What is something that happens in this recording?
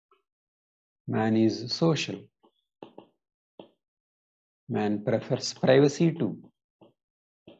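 A man speaks calmly and slowly into a close microphone.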